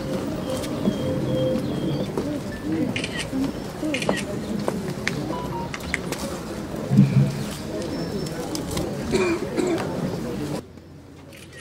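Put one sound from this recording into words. A crowd murmurs quietly outdoors.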